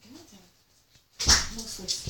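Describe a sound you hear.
A small cartoonish explosion pops.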